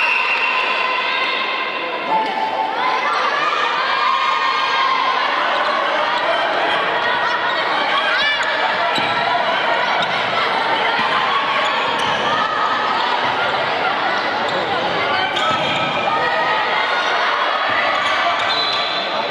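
A crowd of spectators cheers and shouts loudly in an echoing hall.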